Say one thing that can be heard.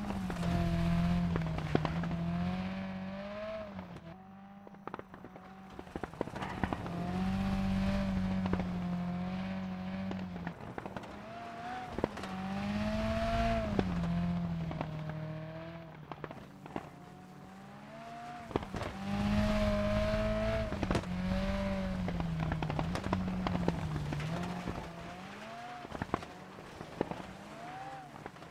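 A rally car engine revs hard, rising and falling as it shifts gears.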